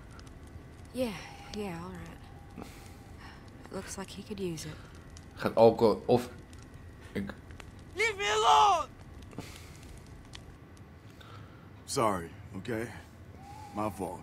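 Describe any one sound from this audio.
A man speaks hesitantly, close by.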